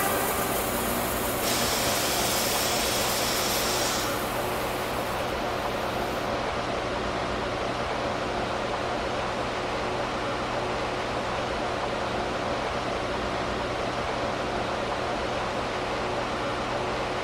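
A subway train's motors hum steadily while it stands idle.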